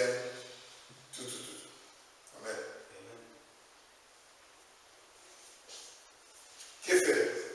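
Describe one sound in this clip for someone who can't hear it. A man speaks calmly and formally, with long pauses.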